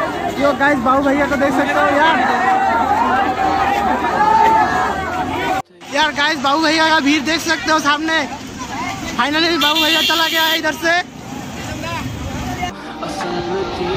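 A large crowd of men shouts and cheers loudly outdoors.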